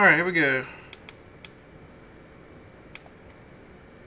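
Buttons on a radio handset click softly.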